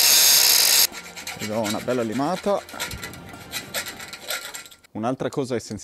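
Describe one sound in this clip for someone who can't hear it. A metal rod scrapes inside a metal pipe.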